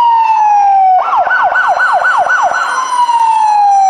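A police siren yelps in a fast repeating wail.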